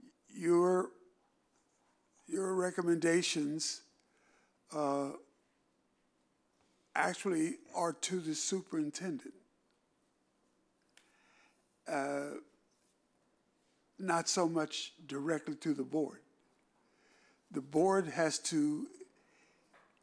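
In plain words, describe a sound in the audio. An elderly man speaks calmly into a microphone in short phrases with pauses.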